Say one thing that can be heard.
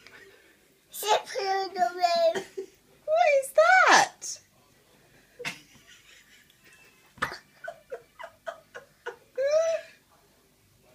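A toddler babbles and squeals up close.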